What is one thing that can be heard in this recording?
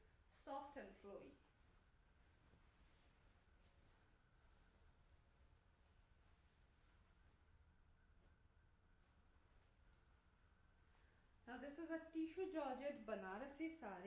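Fabric rustles as it is folded and unfolded.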